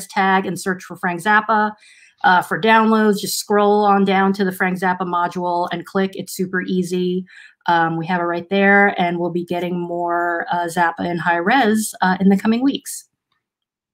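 A young woman talks calmly over an online call.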